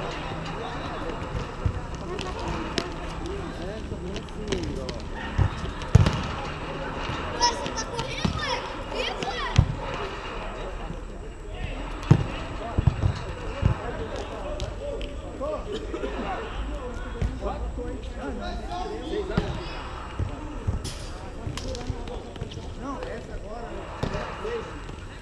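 Young men call out and talk to each other in an echoing hall.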